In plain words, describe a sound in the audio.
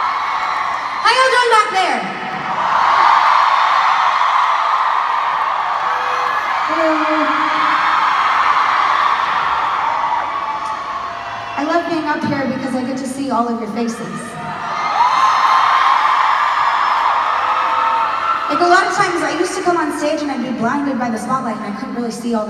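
A young woman speaks through a microphone and loudspeakers in a large echoing hall.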